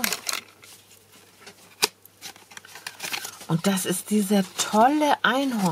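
A plastic packet rustles and crinkles as it is handled.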